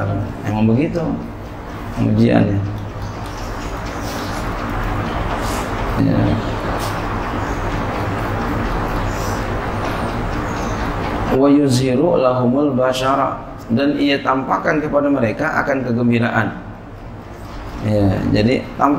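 A middle-aged man reads out and chants through a microphone in an echoing hall.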